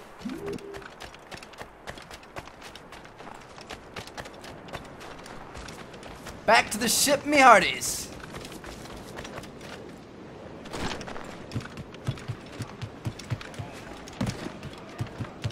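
Footsteps run quickly over snow and wooden planks.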